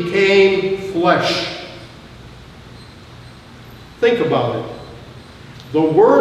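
An elderly man speaks slowly and deliberately through a microphone in a large echoing hall.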